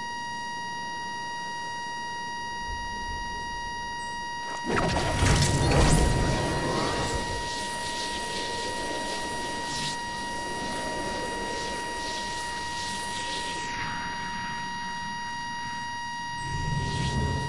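Wind rushes past during a glide through the air.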